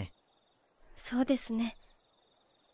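A young woman answers softly.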